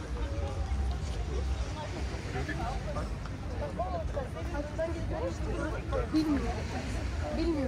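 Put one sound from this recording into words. A crowd of people chatter on all sides outdoors.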